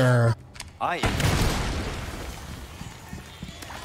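A shotgun fires with a loud blast.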